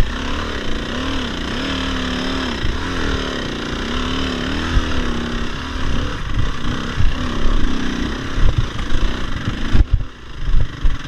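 A dirt bike engine revs and whines up and down close by.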